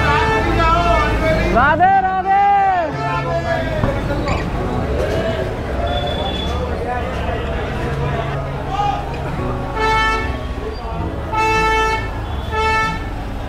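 A crowd of people chatter nearby in a busy street.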